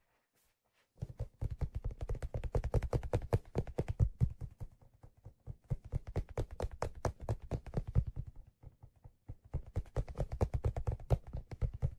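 Fingernails scratch and rub softly on leather close to a microphone.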